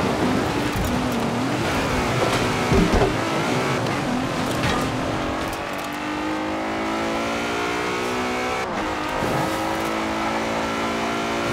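A car engine roars and revs higher as the car speeds up.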